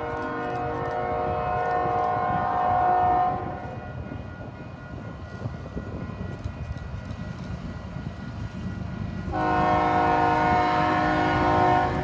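A railway crossing bell rings steadily nearby.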